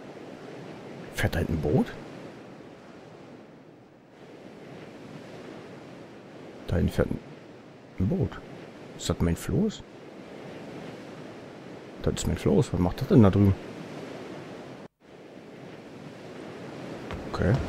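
Waves lap steadily against a wooden ship.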